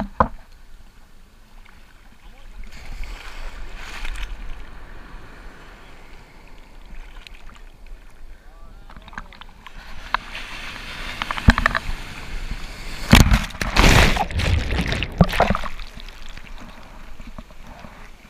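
Waves crash and churn in the surf close by.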